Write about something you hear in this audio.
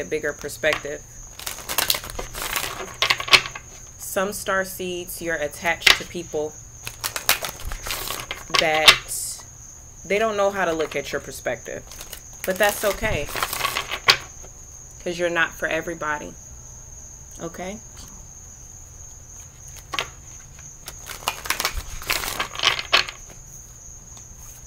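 Playing cards riffle and slap together as they are shuffled.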